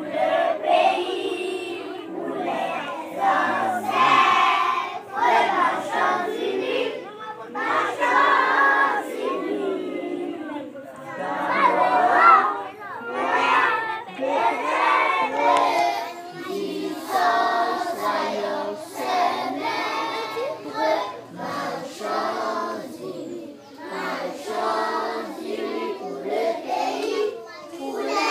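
A large group of children sings together outdoors.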